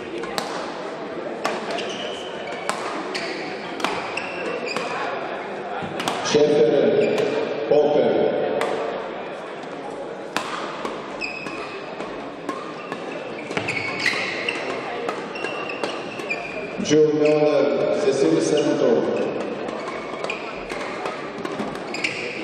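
Shuttlecocks are struck with sharp pops in a large echoing hall.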